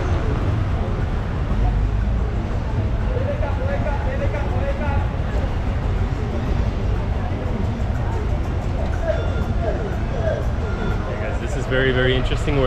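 A busy crowd murmurs and chatters outdoors.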